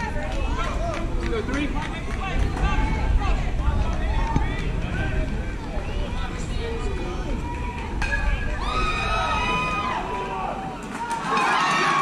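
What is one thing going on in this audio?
Young children shout and call out excitedly nearby outdoors.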